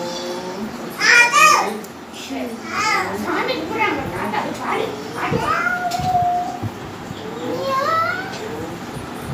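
A man chants in a sing-song voice nearby.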